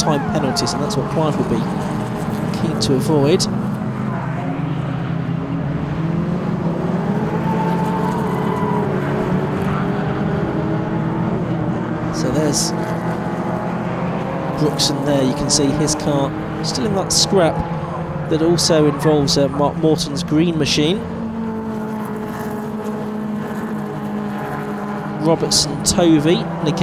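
Car engines rev up and down through gear changes.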